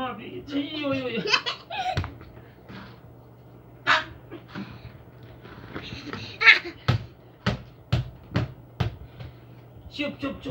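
A young child shouts and laughs close by.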